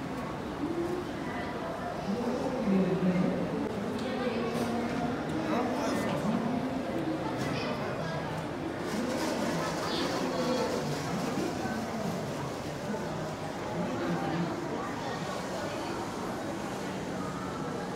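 Shoppers murmur and chatter in a large echoing indoor space.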